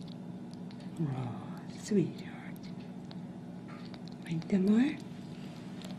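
A tiny kitten mews in short, squeaky cries.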